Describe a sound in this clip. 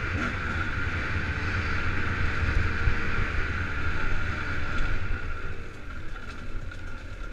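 Wind rushes past loudly, as if heard while riding fast outdoors.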